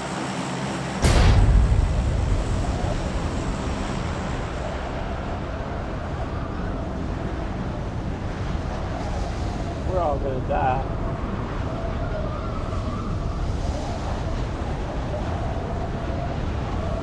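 Wind roars past a skydiver in free fall, bursting in loudly and then rushing steadily.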